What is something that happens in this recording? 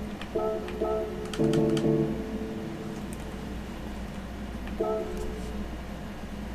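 Short electronic menu chimes sound.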